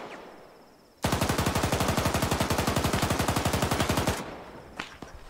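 A heavy machine gun fires a long, rapid burst.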